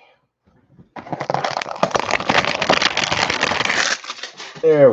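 Plastic wrap crinkles and tears as hands pull it off a box.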